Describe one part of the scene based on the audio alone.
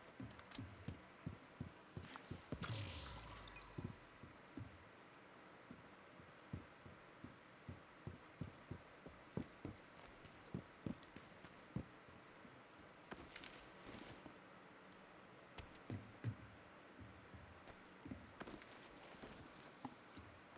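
Footsteps thud steadily on metal and concrete as a soldier runs.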